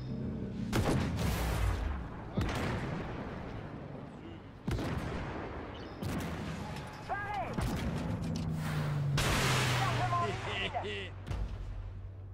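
Tank cannons fire with loud booming blasts.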